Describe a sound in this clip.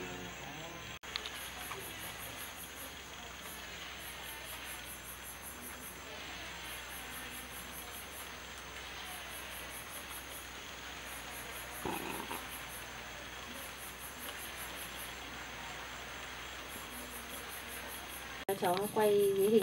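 Oil sizzles softly in a pan over a fire.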